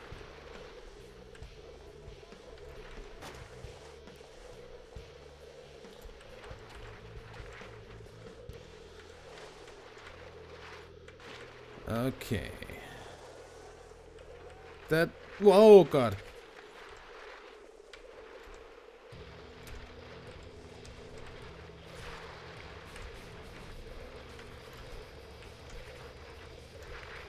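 Skis hiss steadily over snow.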